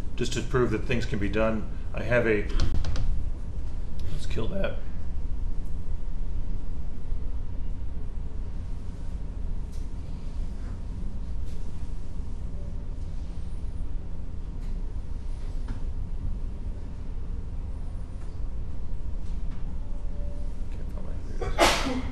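A man speaks calmly through a microphone in a room.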